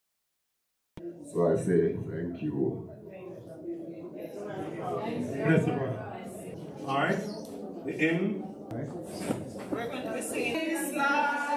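A man speaks steadily through a microphone and loudspeaker in an echoing room.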